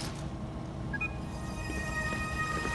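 A computer powers on with a soft electronic chime.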